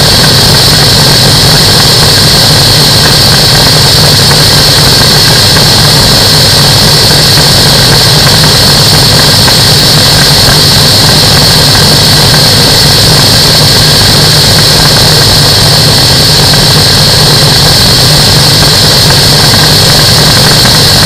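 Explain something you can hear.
A microlight's engine drones loudly and steadily close by.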